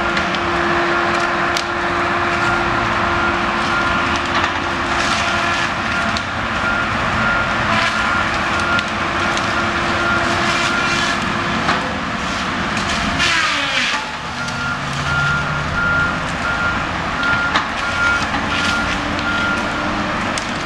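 A train engine rumbles steadily nearby.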